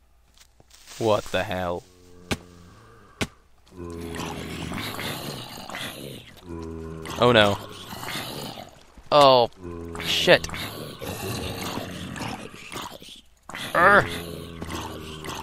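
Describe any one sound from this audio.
Zombies groan and moan nearby.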